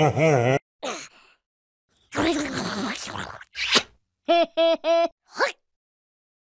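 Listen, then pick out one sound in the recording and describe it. A small cartoon creature babbles and chuckles in a high, squeaky voice, close up.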